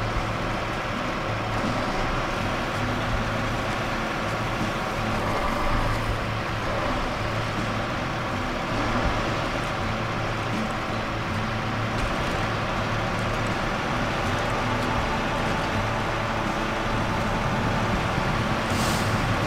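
A heavy truck engine rumbles steadily as the truck crawls along.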